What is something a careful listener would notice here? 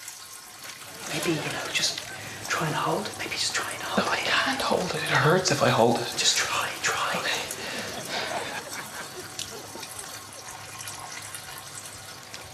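A young man talks anxiously nearby.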